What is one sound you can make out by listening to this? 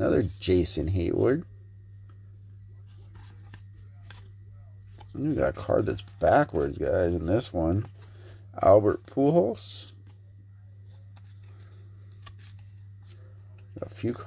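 Trading cards slide and rustle against each other in someone's hands.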